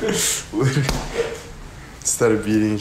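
A young man laughs loudly close to a phone microphone.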